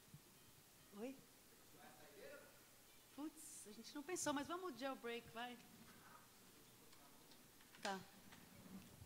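A young woman speaks casually into a microphone.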